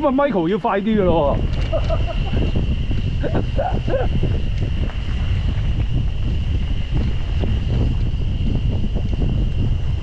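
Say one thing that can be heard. Wind rushes and buffets loudly past a moving rider.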